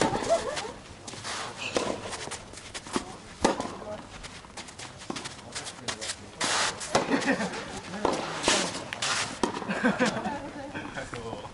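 Shoes scuff and squeak on a court.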